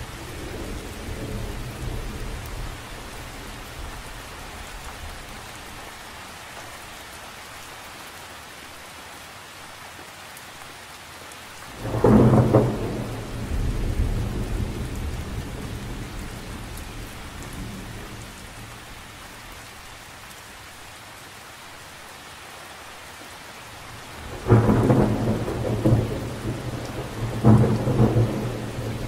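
Gusts of wind rumble outdoors.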